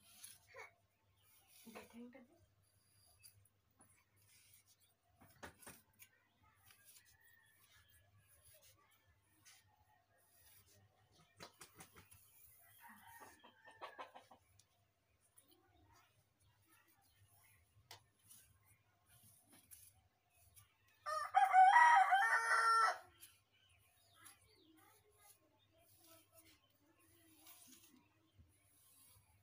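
A comb strokes softly through long hair.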